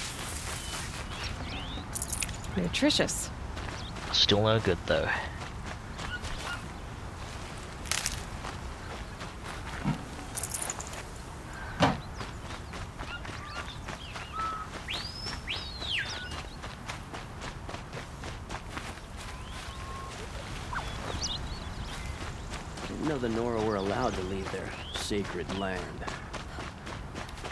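Footsteps patter quickly on dirt and grass.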